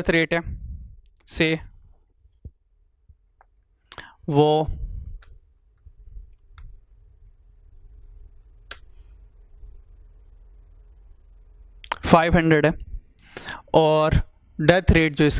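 A man speaks calmly through a clip-on microphone, with pauses.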